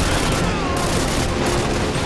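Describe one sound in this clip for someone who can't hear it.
Gunfire crackles ahead.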